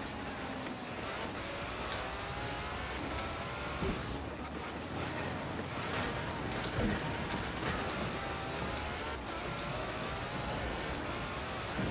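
A sports car engine roars steadily, its pitch rising and falling as it shifts gears.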